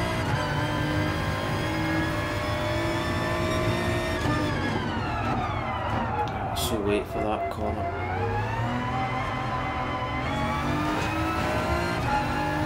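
A racing car engine roars at high revs, drops sharply while braking, then climbs again.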